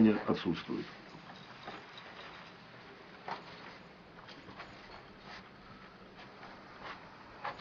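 A middle-aged man speaks briefly, close by.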